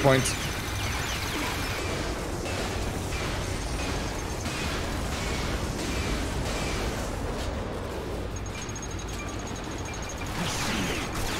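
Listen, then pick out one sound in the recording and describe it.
Explosions rumble loudly.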